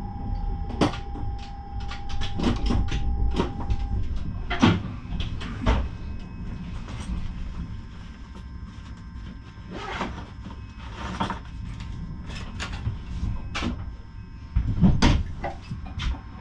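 Train wheels click and clack over the track.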